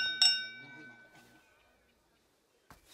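Glasses clink with a bright ringing tone.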